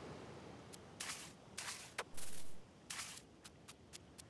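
A pickaxe strikes the ground with sharp scraping hits.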